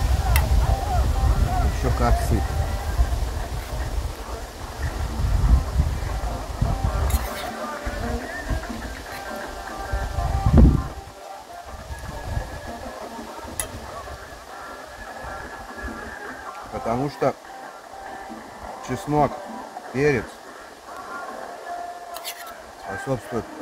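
A spoon clinks and scrapes against a metal bowl.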